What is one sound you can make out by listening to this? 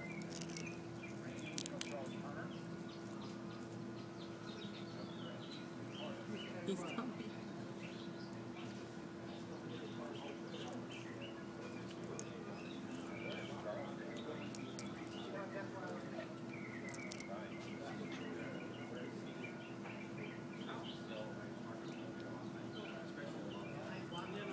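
Small birds chirp and twitter nearby outdoors.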